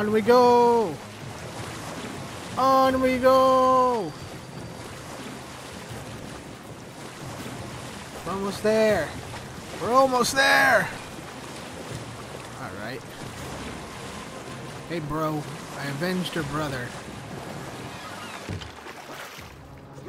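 Water splashes steadily against a sailing boat's hull.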